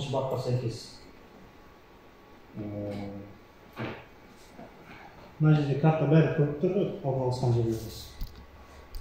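A man speaks close by, in short bursts.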